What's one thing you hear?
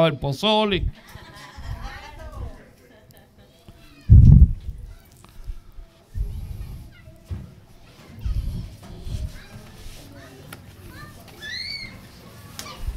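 A group of people murmur and talk among themselves.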